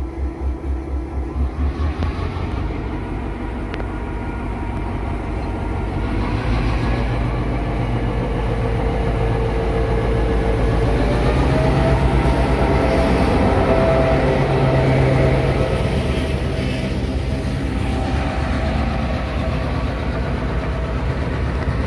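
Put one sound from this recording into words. A diesel locomotive engine rumbles deeply as it pulls in close by.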